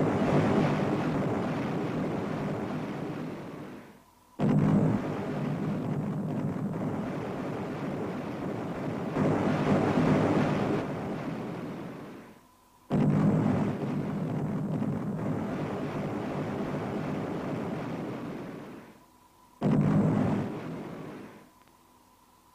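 Heavy guns fire with loud booms that rumble away.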